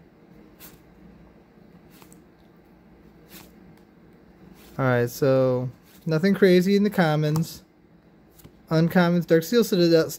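Playing cards softly slide and flick as they are sorted by hand.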